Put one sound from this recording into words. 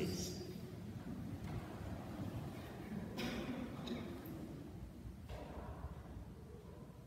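A man speaks quietly in an echoing room.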